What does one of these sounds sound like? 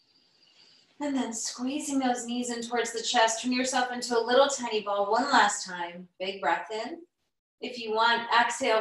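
A woman speaks calmly and clearly, close to the microphone.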